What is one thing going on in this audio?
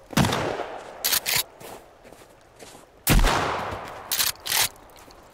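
A shotgun is pumped with metallic clacks.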